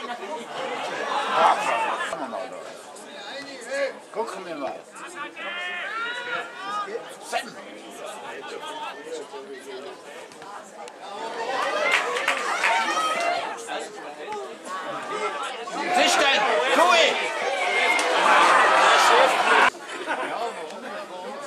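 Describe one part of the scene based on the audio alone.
A crowd of spectators close by chatters and shouts with excitement.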